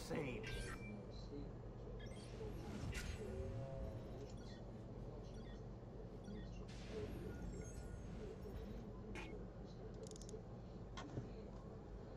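Short menu clicks sound now and then.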